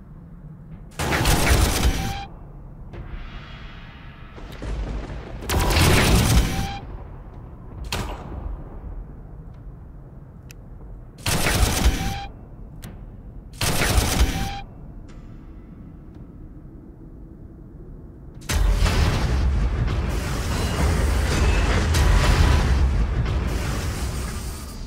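Guns fire in loud bursts.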